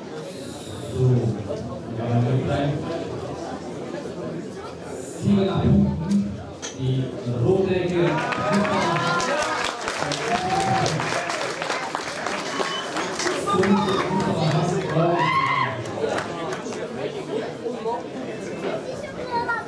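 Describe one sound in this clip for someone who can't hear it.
A man announces loudly over a loudspeaker.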